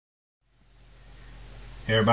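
Hands shift a metal box across a wooden surface.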